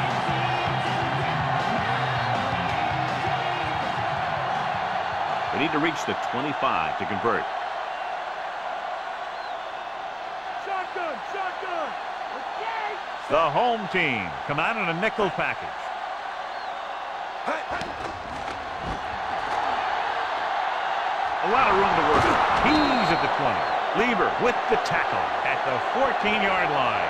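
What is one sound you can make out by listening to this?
A stadium crowd roars steadily and swells loudly near the end.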